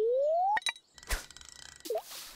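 A fishing float splashes into water.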